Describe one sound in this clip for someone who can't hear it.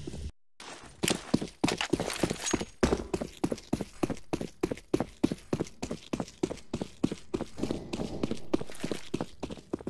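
Quick footsteps run steadily on hard ground.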